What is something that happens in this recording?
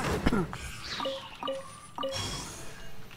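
A short bright chime rings out a few times.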